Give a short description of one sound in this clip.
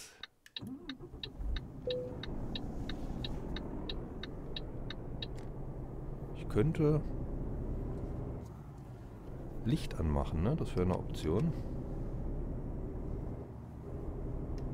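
A truck engine starts and rumbles steadily.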